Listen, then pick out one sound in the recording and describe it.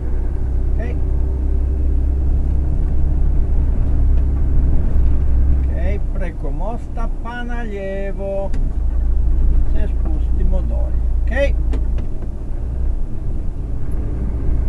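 A vehicle engine rumbles steadily from inside the cab.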